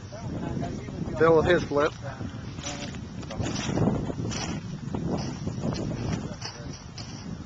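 A middle-aged man talks outdoors, close by.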